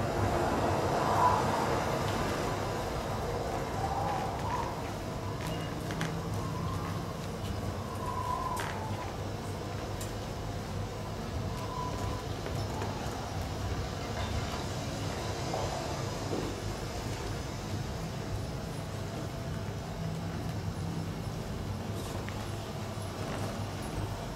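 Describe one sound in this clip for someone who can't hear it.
Plastic sheeting rustles softly as performers move about.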